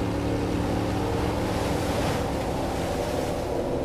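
Water splashes and swishes in a small boat's wake.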